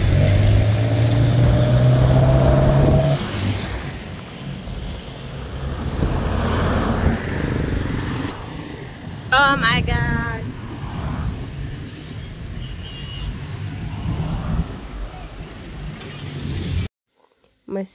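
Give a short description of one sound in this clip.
Traffic rumbles by on a road outdoors.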